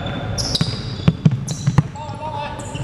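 A basketball bounces on the court with hollow thuds.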